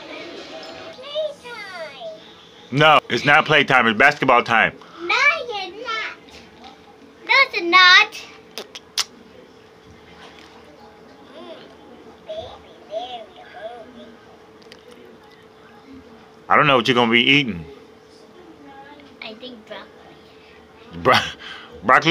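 A young girl talks and sings excitedly close by.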